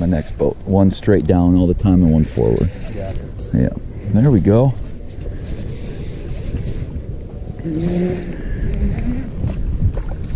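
A man talks excitedly nearby.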